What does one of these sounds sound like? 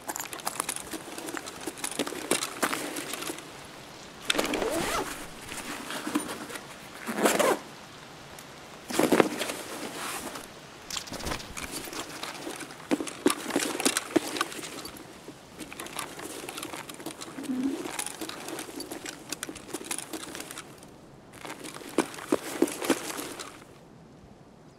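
Footsteps tread on a hard floor indoors.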